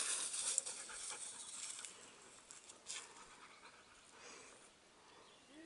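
A dog's paws patter on gravel.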